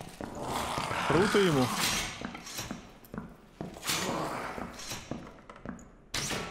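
Footsteps thud on a stone floor at a steady pace.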